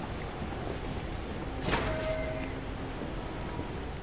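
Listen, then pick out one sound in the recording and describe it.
A heavy metal door creaks open with a clank.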